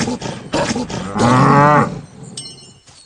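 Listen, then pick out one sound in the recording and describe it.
A large horned animal bellows.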